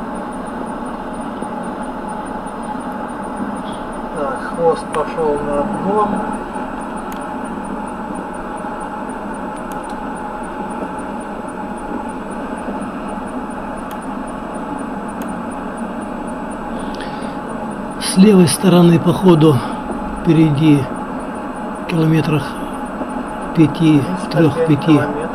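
Tyres hiss steadily on a wet road as a car drives along.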